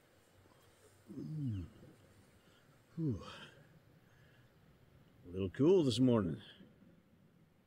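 A man speaks nearby, calmly.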